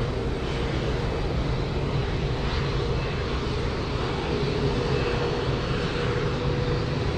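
A parked jet airliner's engine hums and whines steadily.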